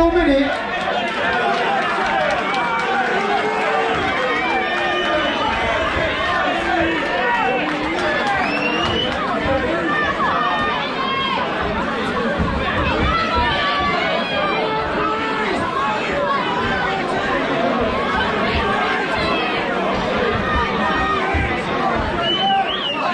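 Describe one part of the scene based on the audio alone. A crowd of spectators chatters and calls out loudly in an echoing hall.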